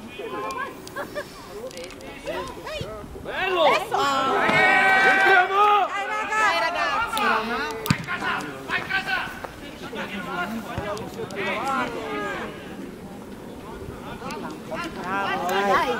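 Young male players shout to each other across an open outdoor field.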